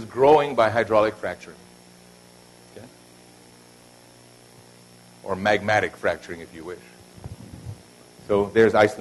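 A man lectures calmly through a microphone, with pauses between phrases.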